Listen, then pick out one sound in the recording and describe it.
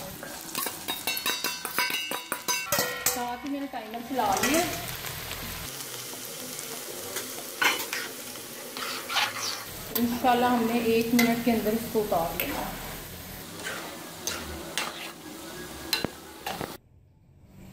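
Hot oil sizzles and crackles loudly as lentils drop into it.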